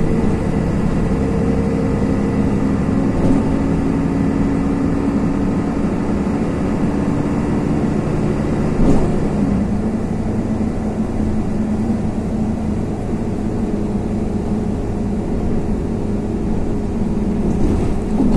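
A vehicle engine hums steadily from inside as it drives.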